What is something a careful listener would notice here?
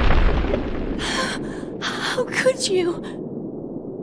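A young woman speaks anxiously.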